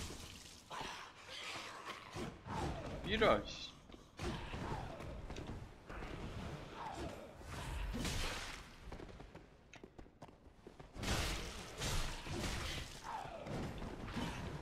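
A monster shrieks with falling, rasping cries.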